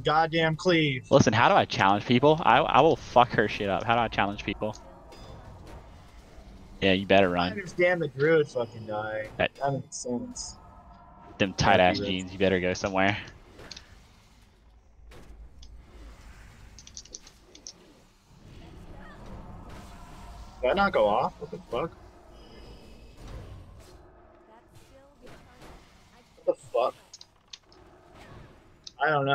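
Spell effects crackle and clash in a game fight.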